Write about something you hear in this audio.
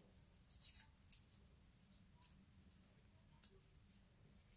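Small objects tap and click lightly on a table.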